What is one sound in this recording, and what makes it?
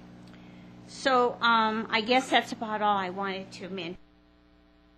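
An elderly woman speaks into a microphone.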